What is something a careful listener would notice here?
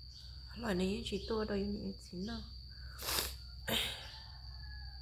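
A woman sniffs loudly.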